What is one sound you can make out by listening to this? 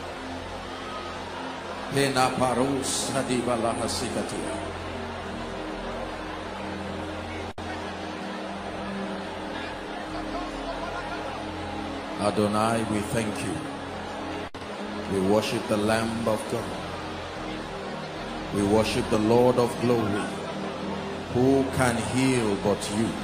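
A large crowd prays and sings loudly in an echoing hall.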